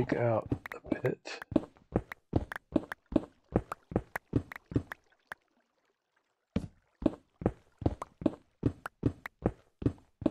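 A pickaxe chips rapidly at stone in quick, even knocks.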